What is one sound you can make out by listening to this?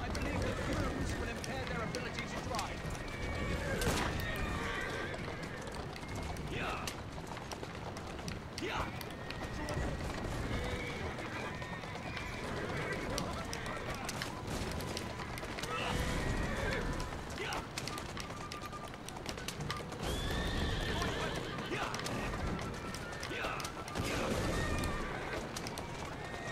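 A horse-drawn carriage rattles along a road at speed.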